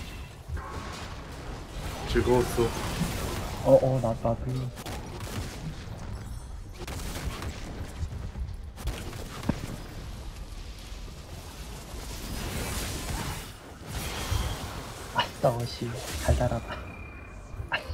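Game combat effects clash and whoosh in quick bursts.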